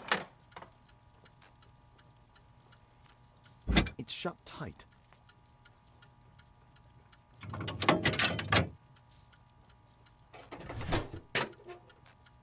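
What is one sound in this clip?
Heavy metal pieces clank and scrape as they slide apart and fit back together.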